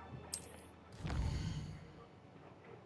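A deep magical whoosh swells and fades as a map opens.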